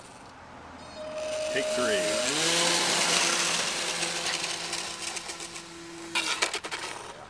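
A small model plane's electric motor whines, rising in pitch as it speeds up.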